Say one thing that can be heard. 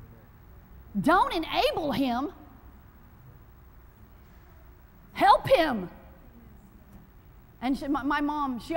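A woman speaks with animation in short bursts, in a large echoing room.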